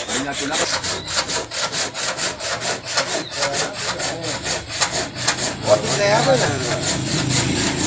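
Several men talk casually nearby outdoors.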